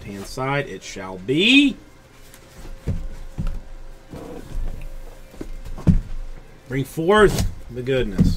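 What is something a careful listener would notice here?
Small cardboard boxes knock and slide against each other as they are moved.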